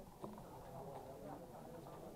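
A hand moves plastic checkers on a backgammon board.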